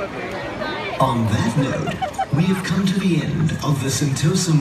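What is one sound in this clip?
A crowd sings together loudly outdoors.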